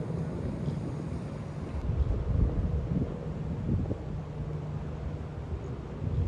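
Wind gusts outdoors, rumbling low across the microphone.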